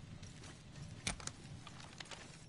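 A metallic click sounds as a rifle is picked up.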